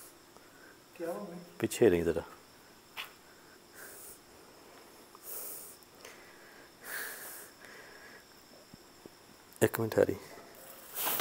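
A young man speaks briefly and with animation, close by.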